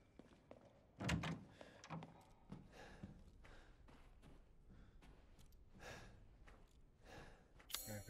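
A man speaks quietly into a close microphone.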